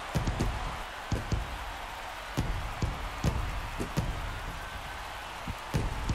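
A crowd cheers loudly in a stadium.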